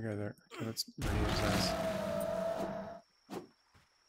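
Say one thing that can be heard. A heavy blow lands with a crunch.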